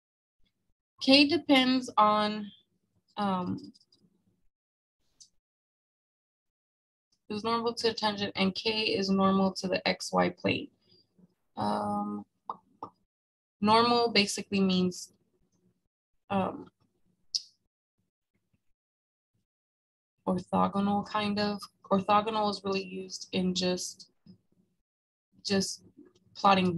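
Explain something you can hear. A young woman speaks calmly through a microphone, in short phrases with pauses.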